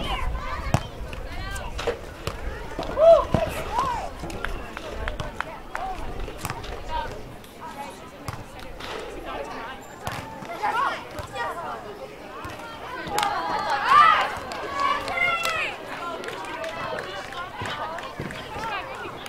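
Young women talk and call out nearby, outdoors.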